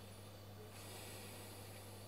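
A young woman speaks softly through a small television loudspeaker.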